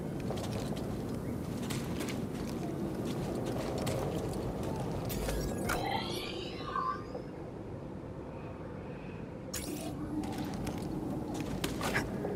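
Footsteps crunch on a forest floor.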